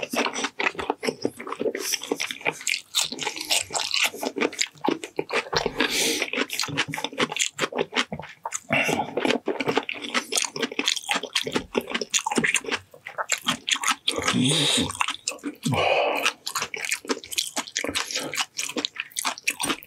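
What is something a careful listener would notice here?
A young man chews food noisily close to a microphone.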